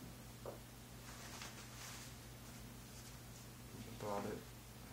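Paper rustles softly as a hand rubs over it.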